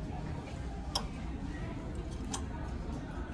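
Hangers click against a metal rail.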